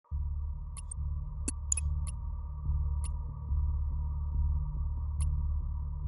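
Menu clicks tick softly.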